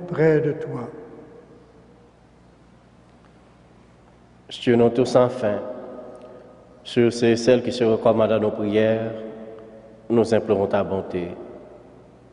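A man speaks into a microphone in a large echoing hall, in a slow chanting voice.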